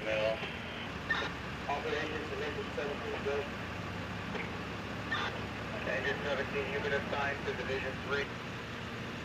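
Men talk nearby in calm voices, outdoors.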